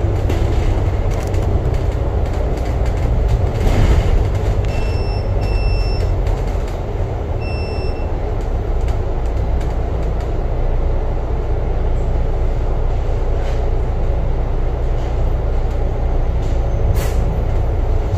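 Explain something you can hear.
Traffic hums past outdoors.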